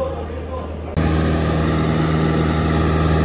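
An aircraft engine hums steadily nearby.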